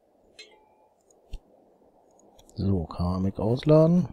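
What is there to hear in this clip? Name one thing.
A menu opens with a soft click.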